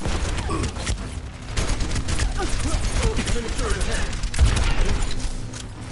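A beam weapon buzzes and crackles.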